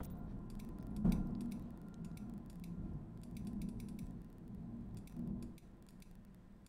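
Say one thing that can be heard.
A low, dull thump sounds a few times.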